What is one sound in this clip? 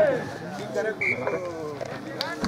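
A referee's whistle gives a short blast.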